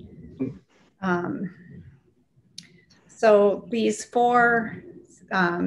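A woman talks calmly, heard through an online call.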